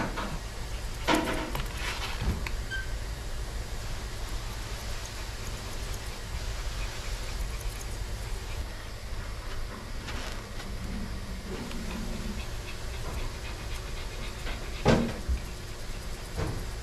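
Scissors snip through a dog's fur in quick, light clicks.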